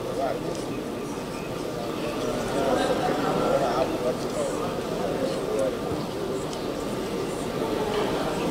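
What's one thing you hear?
A large crowd murmurs and chatters throughout a big echoing hall.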